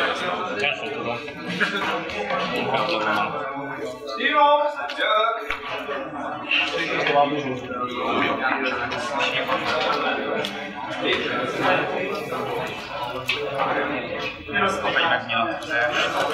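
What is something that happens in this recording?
Young men talk in low voices nearby.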